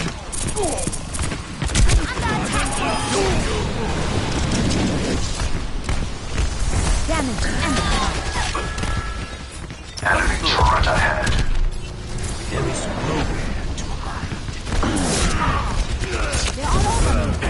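A beam weapon hums and crackles as it fires.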